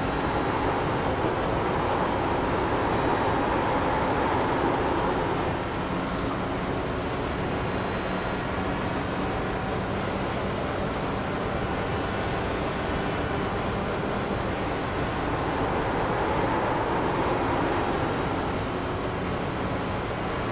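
A racing car engine drones loudly at high speed, rising and falling in pitch.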